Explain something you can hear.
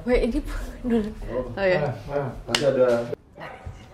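A clapperboard snaps shut.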